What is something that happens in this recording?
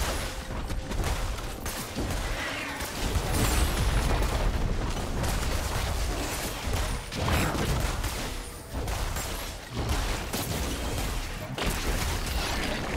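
Spell blasts crackle and thud in a busy game fight.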